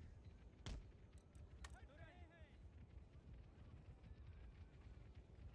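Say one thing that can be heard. Muskets fire in rapid crackling volleys.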